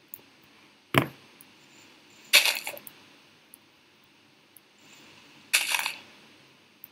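Earth crunches in short bursts as blocks are dug out.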